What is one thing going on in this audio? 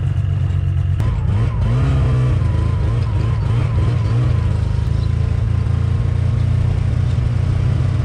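A snowmobile engine revs and pulls away, rising and falling in pitch.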